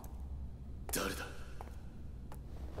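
A young man calls out sharply, close by.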